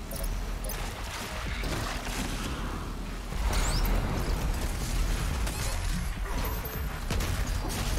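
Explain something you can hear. A heavy gun fires in rapid blasts.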